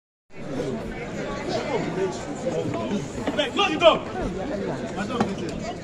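A crowd of men chatter close by in a busy, echoing room.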